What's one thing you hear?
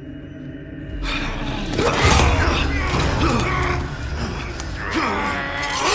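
A struggle breaks out with loud thuds and scuffling.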